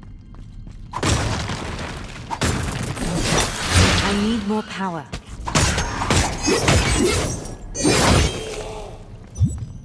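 Magic spells whoosh and blast in a fierce fight.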